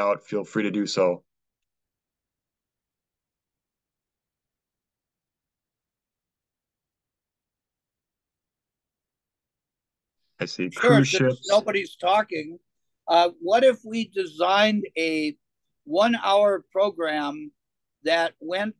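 A middle-aged man speaks calmly over an online call, pausing now and then.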